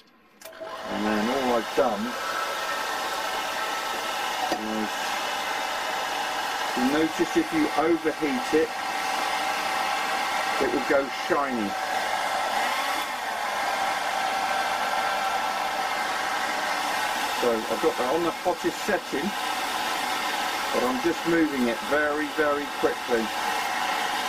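A hair dryer blows with a steady whirring rush of air.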